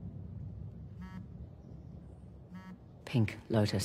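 A phone chimes with incoming messages.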